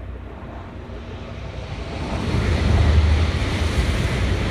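A high-speed train roars past, growing louder.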